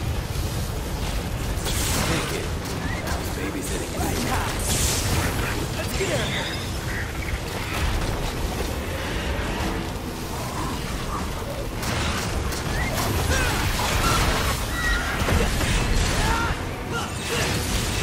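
A huge monster growls and roars.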